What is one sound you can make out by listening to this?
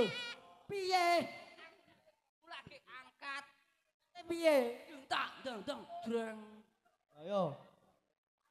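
A young man shouts and sings loudly into a microphone, heard through loudspeakers.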